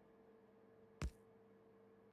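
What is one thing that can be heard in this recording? A soft click sounds.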